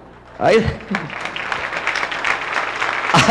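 An audience laughs and murmurs.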